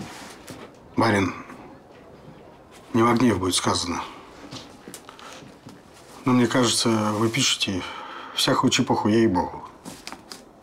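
A middle-aged man speaks calmly and hesitantly nearby.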